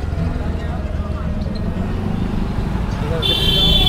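A motorbike engine hums as it passes.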